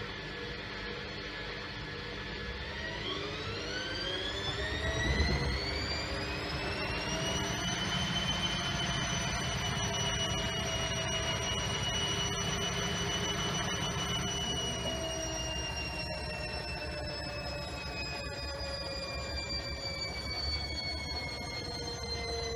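A washing machine motor whines, rising in pitch, then holding steady and slowly falling.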